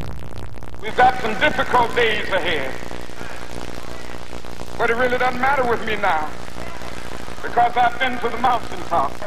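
A middle-aged man speaks slowly and forcefully into a microphone.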